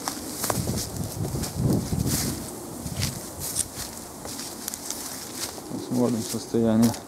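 Dry reeds rustle and crackle in the wind.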